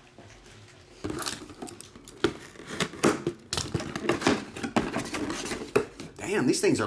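Cardboard rustles and scrapes as hands open a box.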